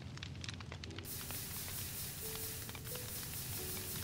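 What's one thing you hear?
Fire hisses as it is put out.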